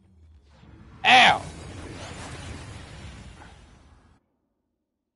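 A magical burst rings out with a shimmering whoosh and a deep rumble.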